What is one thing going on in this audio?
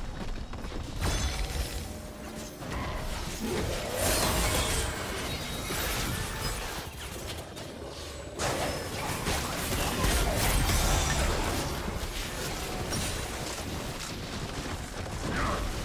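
Spell effects whoosh and crackle in a fast fight.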